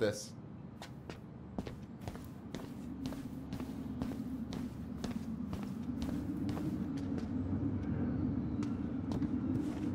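Footsteps walk steadily across a hard floor indoors.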